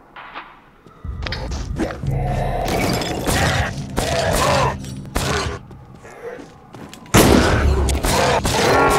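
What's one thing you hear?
Loud fighting sounds with swishing blows and crackling bursts.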